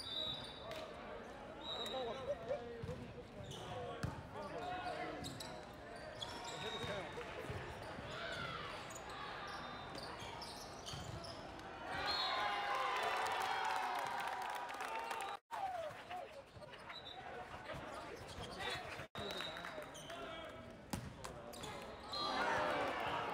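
A referee's whistle blows in short bursts.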